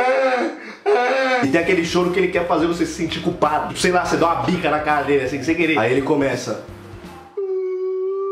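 A young man talks animatedly and close to a microphone.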